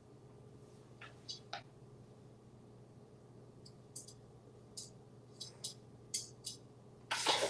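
A parrot's beak taps and clicks against a metal bowl.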